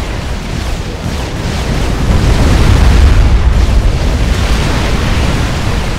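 Explosions rumble and gunfire crackles in a battle.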